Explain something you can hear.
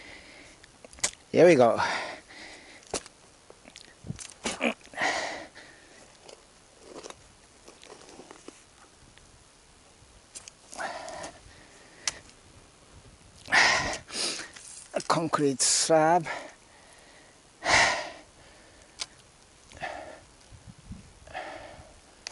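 A shovel scrapes and digs into soil in bursts.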